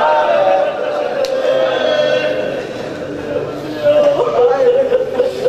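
A man recites in a loud, sustained chanting voice through a microphone, in an echoing hall.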